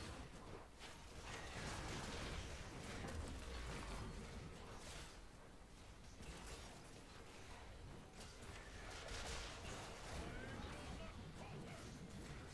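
Fighting sounds clash, whoosh and crackle in quick bursts.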